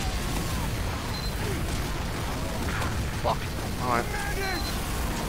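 Guns fire and explosions boom in rapid bursts.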